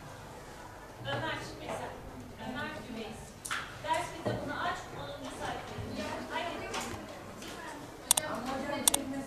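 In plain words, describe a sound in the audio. A woman speaks calmly to children.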